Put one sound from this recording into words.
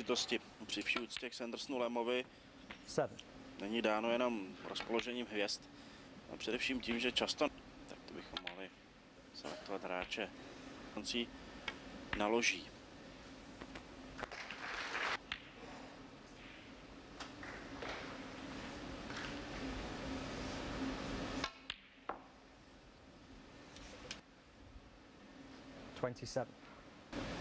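A cue tip strikes a snooker ball with a sharp click.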